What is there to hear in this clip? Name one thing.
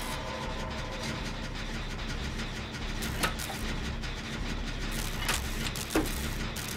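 A mechanical generator rattles and clanks as hands work on its parts.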